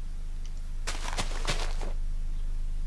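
Dirt crunches as it is dug out in quick strokes.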